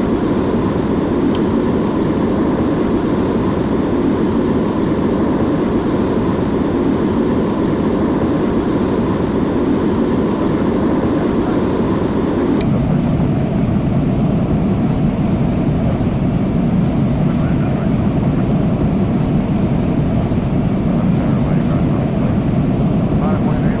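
Jet engines roar steadily, then sound deeper and muffled.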